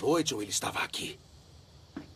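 A man asks a question in a low, tense voice close by.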